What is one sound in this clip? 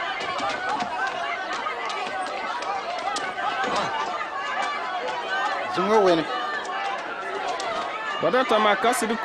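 A crowd of men murmurs and talks at once.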